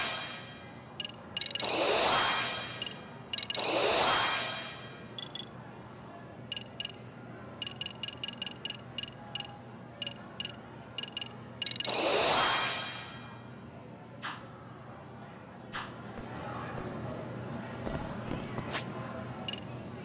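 Short menu clicks tick quickly one after another.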